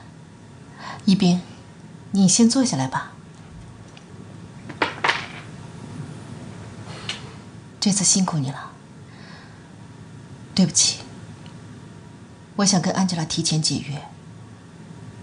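A middle-aged woman speaks calmly.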